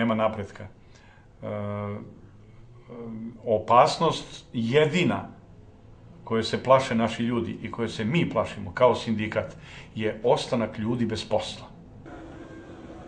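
A middle-aged man speaks earnestly up close.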